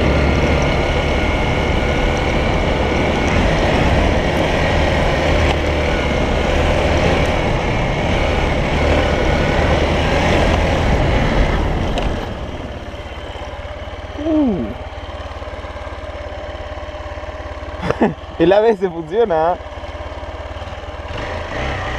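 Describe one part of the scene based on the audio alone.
A motorcycle engine hums steadily, then drops to a quieter purr.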